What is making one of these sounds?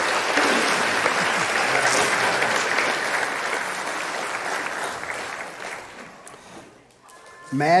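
A crowd claps and cheers loudly, then the applause fades.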